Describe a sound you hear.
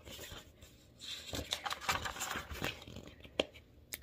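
Paper pages rustle and flip as a book page is turned close by.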